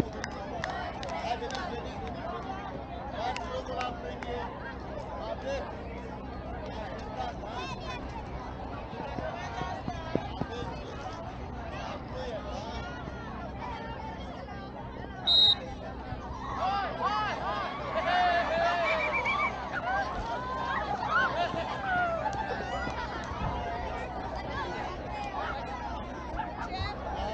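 A large crowd of people chatters outdoors at a distance.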